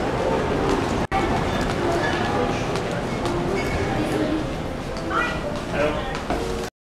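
A crowd of people chatters in an echoing hall.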